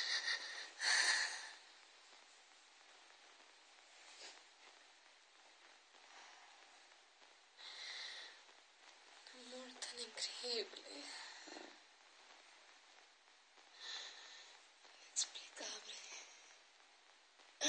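A young woman speaks softly and haltingly close to a microphone.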